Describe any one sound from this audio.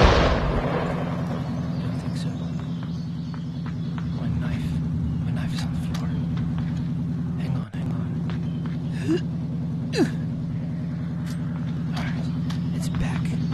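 A heavy vehicle engine rumbles steadily nearby.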